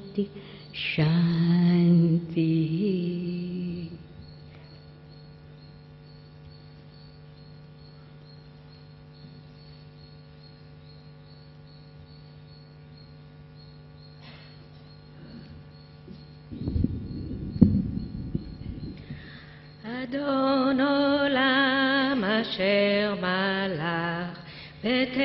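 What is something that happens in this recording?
A woman sings slow, held notes into a microphone.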